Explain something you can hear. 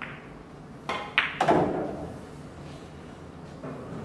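Billiard balls knock together and thud against the cushions.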